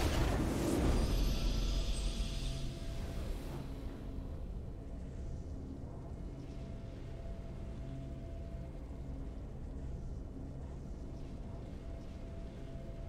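A short triumphant game fanfare plays, then settles into quiet music.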